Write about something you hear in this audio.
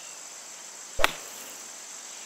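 A golf club strikes a ball out of sand with a sharp thwack.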